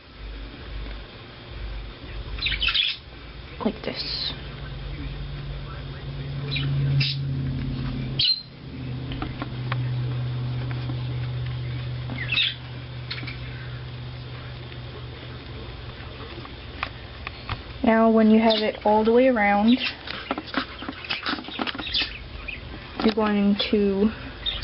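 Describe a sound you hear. Cloth rustles as hands handle it close by.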